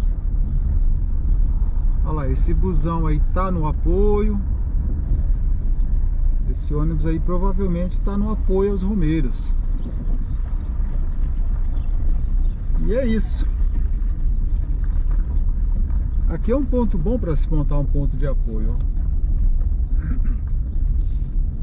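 A car engine hums low and steady from inside the car.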